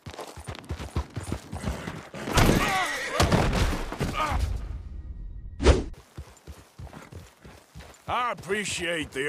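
Horse hooves clop on rocky ground.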